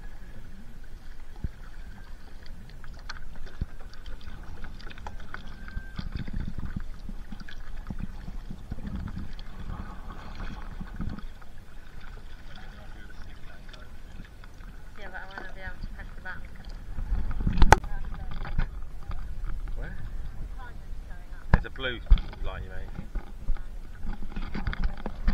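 Water laps and splashes against a kayak.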